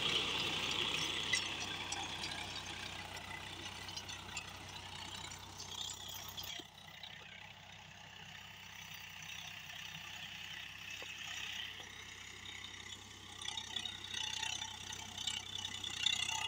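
A tractor engine rumbles steadily, close at first and then farther off.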